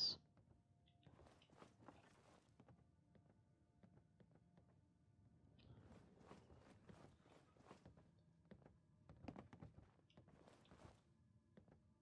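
Footsteps thud and creak on wooden boards and stairs.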